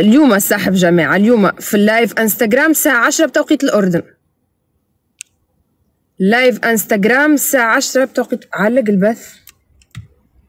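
A young woman talks calmly and closely into a phone microphone.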